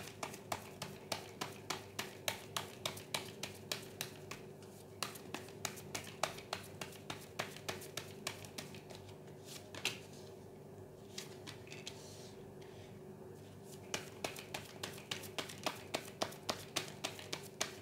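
A deck of cards is shuffled with quick, rhythmic clicking.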